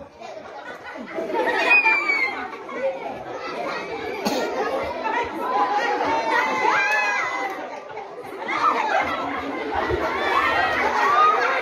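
A crowd of children chatter and shout excitedly outdoors.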